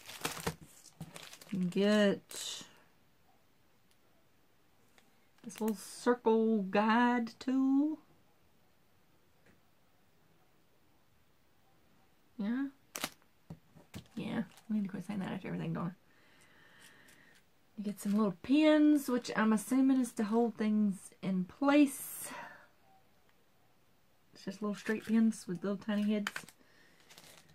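A woman talks calmly and close by, pausing often.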